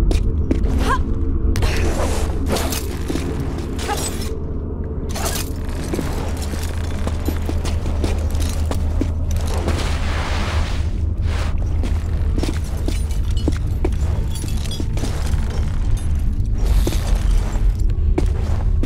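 Hands scrape and grip as a climber pulls up a wall.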